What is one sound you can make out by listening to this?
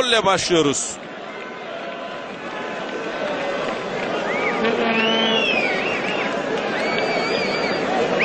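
A crowd murmurs in a large open stadium.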